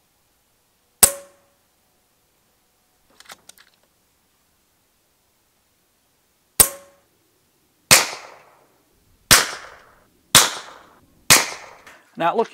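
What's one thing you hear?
A rifle fires several sharp, suppressed shots outdoors.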